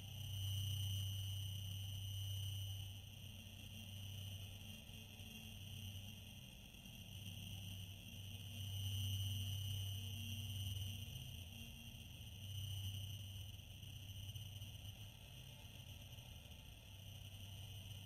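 Spaceship engines hum low and steadily, swelling and easing.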